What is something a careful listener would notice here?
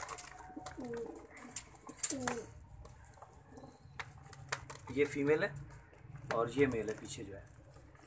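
Pigeons coo close by in low, rolling calls.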